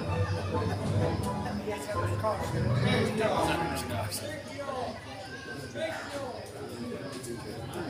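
Elderly men talk and chat nearby.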